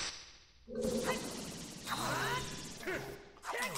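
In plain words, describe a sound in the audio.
A sword whooshes around in a spinning slash.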